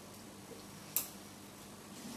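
Metal instruments clink softly against each other.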